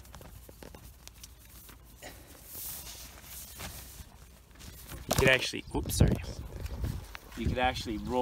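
Tent fabric rustles and crinkles as hands handle it.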